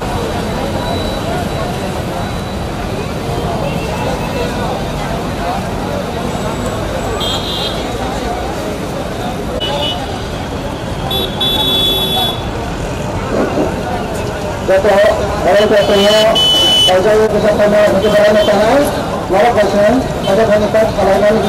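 A crowd murmurs outdoors.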